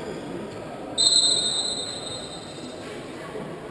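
A referee's whistle blows a long blast.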